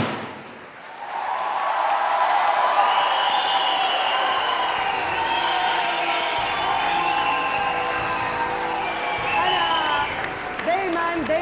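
A large crowd cheers and claps loudly.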